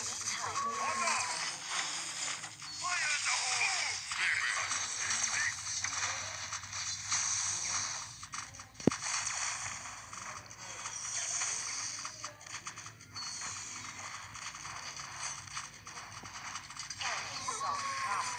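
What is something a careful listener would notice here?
Game towers fire over and over with zaps and small blasts.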